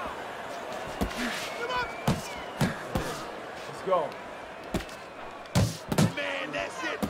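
Punches thud against a boxer's body.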